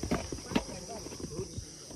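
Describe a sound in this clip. Footsteps crunch on a dirt trail.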